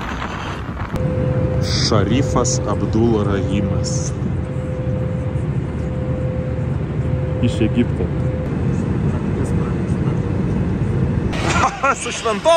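A jet engine hums steadily inside a plane cabin.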